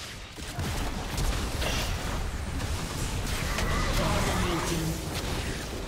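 Sharp impacts hit in quick succession.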